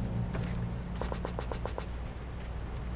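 A quick run of clicks sounds as items are picked up.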